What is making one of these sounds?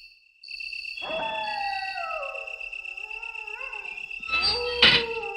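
A metal gate creaks slowly open.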